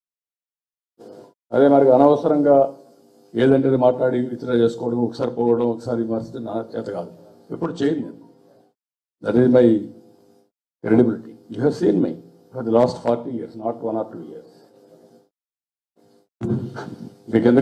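A man speaks forcefully into a microphone, heard through a loudspeaker.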